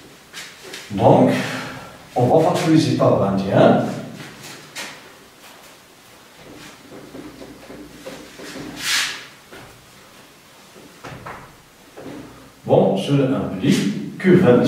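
A man speaks calmly nearby in an echoing room.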